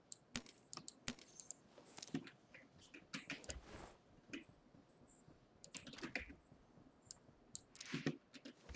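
Menu sounds click quickly, again and again.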